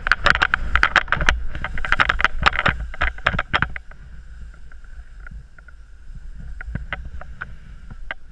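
A snowboard scrapes and hisses through powder snow.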